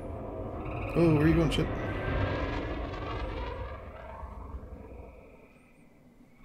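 A spaceship engine roars and fades away into the distance.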